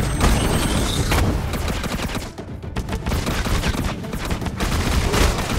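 Gunfire and explosions crackle in a fast video game fight.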